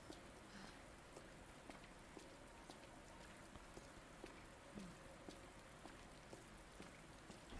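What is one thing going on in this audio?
Footsteps walk steadily on a hard floor.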